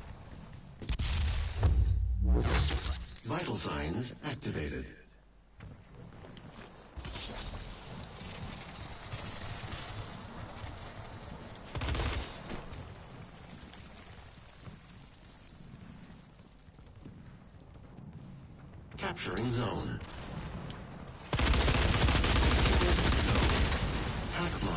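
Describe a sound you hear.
Gunfire and explosions boom from a video game.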